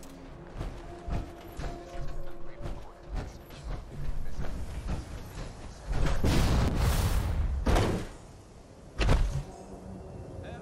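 Heavy metal footsteps thud and clank on a hard floor.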